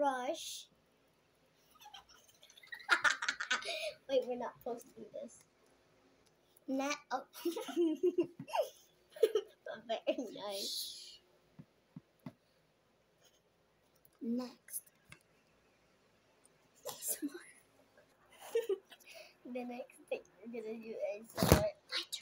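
A young girl talks and giggles close to a microphone.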